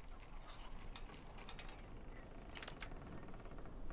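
A metal lock pick clicks and scrapes inside a lock.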